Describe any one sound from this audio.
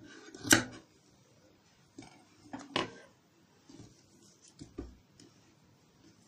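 Cloth rustles as it is handled and smoothed.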